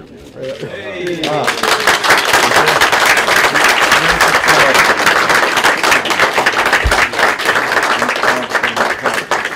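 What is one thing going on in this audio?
A small crowd applauds loudly.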